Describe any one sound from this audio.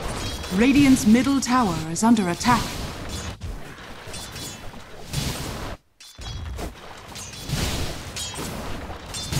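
Fantasy battle sound effects clash, crackle and whoosh.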